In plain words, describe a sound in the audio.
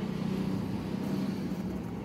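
Fine powder softly pours into a bowl.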